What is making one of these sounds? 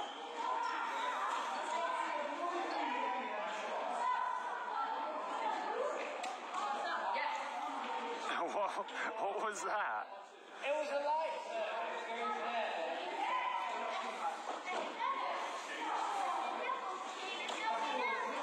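Young men talk casually in a large echoing hall.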